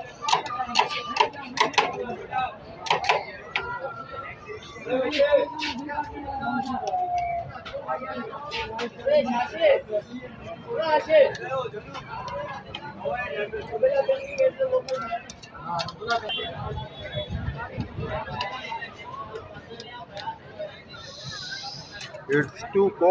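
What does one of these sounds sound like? Metal spatulas scrape and clack against a metal plate.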